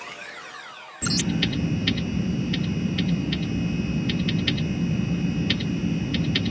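An electronic computer interface blips and beeps.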